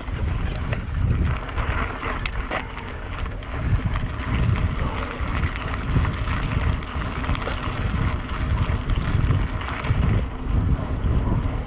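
Mountain bike tyres crunch over gravel.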